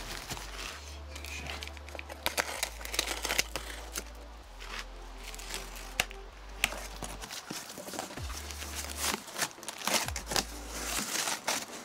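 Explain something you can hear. A utility knife slices through packing tape and cardboard with scratchy rasps.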